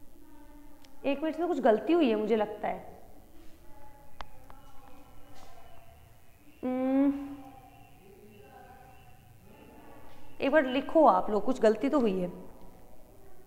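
A woman speaks calmly and clearly, as if explaining a lesson.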